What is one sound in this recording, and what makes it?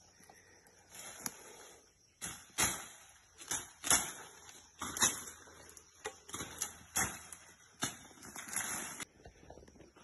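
A machete chops through brush and branches with sharp knocks.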